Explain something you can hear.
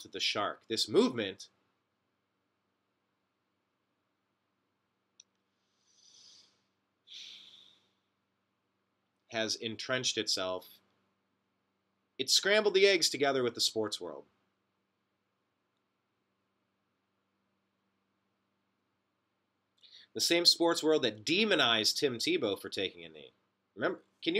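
A man talks close to a microphone in short bursts with long pauses.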